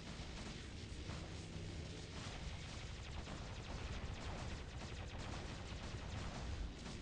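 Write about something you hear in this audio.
Mechanical footsteps of a large robot thud steadily.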